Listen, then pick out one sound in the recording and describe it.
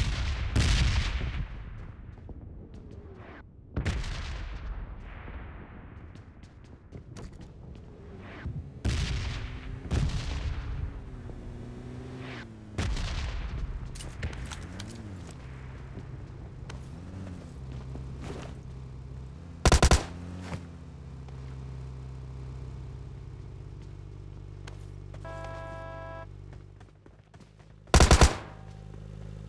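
Footsteps thump quickly as a character runs.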